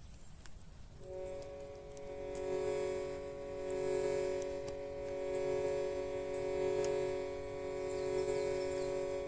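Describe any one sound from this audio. A harmonium plays a steady, droning chord.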